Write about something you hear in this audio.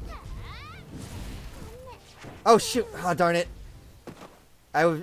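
Fiery blasts burst and crackle in a video game battle.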